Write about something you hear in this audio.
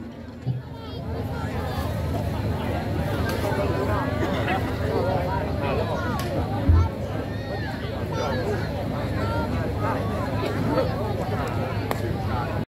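A crowd of young women chatter all at once outdoors.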